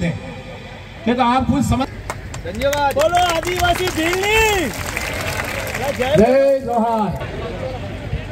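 An elderly man speaks loudly and with animation through a microphone and loudspeakers.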